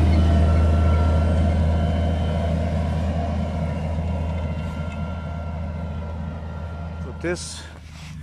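A tractor engine rumbles steadily and fades as it drives away.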